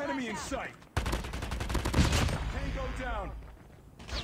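A rifle fires a fast burst of shots.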